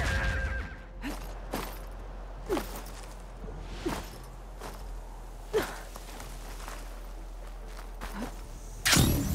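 Footsteps scrape and thud on rocky ground.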